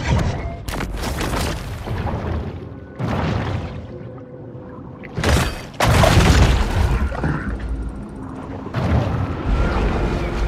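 Water rushes and swirls as a large creature swims underwater.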